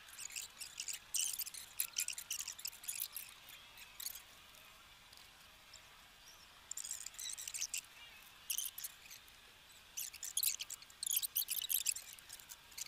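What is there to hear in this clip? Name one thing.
Scissors snip at small branches.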